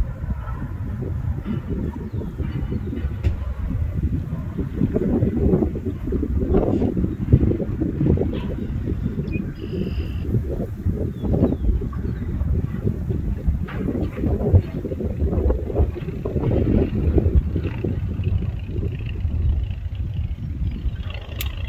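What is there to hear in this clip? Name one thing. Freight train wagons rumble and clatter steadily along the track.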